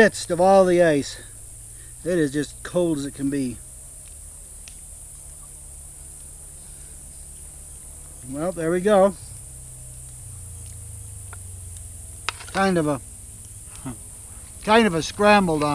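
An elderly man talks calmly and close by.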